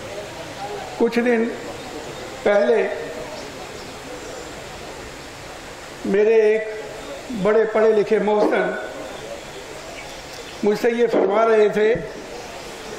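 An older man speaks in short bursts into a microphone, heard through loudspeakers.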